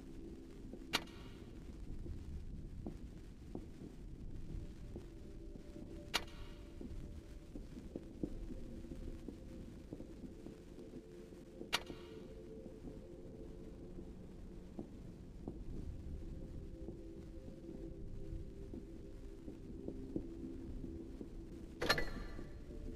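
A short interface click sounds several times.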